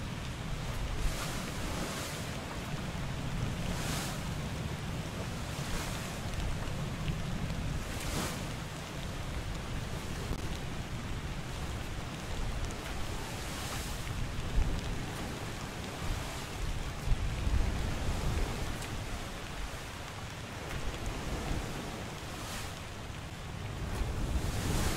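Book pages flip with a quick papery swish, again and again.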